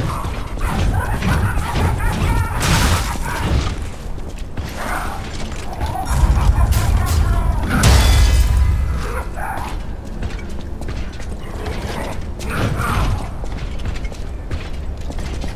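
Heavy blows thud and clash in a fight.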